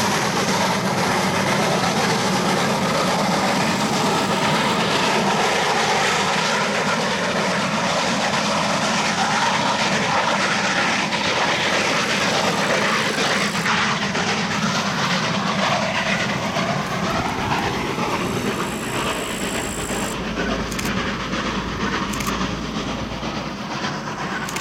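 Train wheels rumble and clack on the rails as the train passes.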